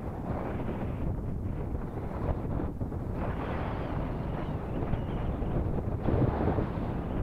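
Wind blows hard and rumbles against the microphone outdoors.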